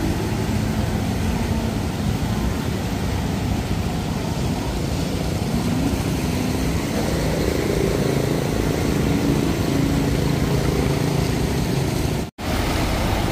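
Motorbike engines putter through deep water.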